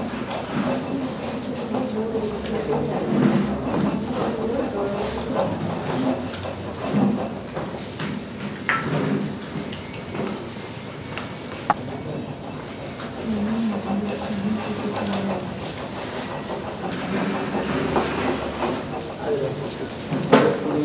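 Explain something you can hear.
A stone pestle pounds and grinds wet paste in a stone mortar.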